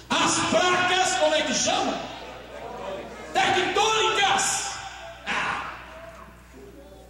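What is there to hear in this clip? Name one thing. A man preaches loudly and with passion into a microphone, heard through loudspeakers in an echoing hall.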